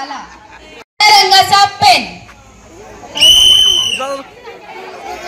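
A woman speaks loudly and with animation through a microphone and loudspeakers.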